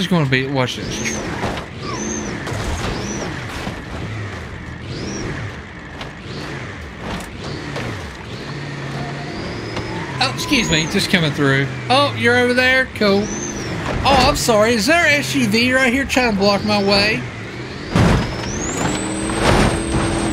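Metal crunches as a truck crashes onto cars.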